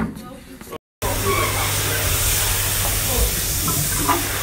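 A toilet flushes with rushing water.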